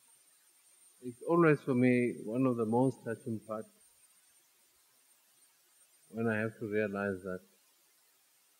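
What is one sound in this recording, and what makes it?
A middle-aged man speaks slowly into a microphone, outdoors, in short phrases with pauses.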